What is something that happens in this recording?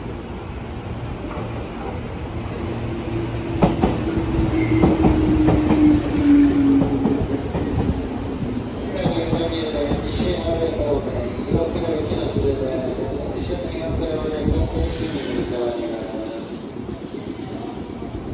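A train rumbles closer and slows to a stop.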